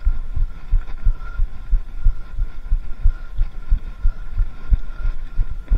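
Bicycle tyres rumble and bump over a dirt trail.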